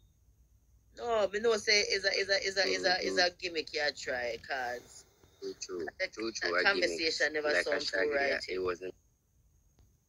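An elderly woman talks calmly through a phone speaker.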